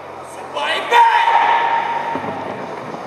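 A young man shouts loudly in a large echoing hall.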